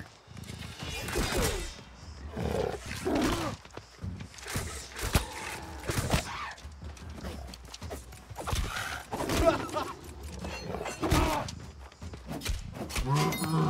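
Blows and bursts of flame strike during a fight.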